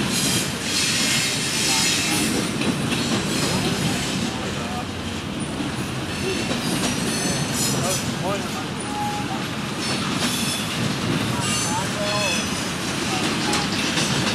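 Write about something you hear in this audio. A freight train rumbles and clatters steadily past on the tracks.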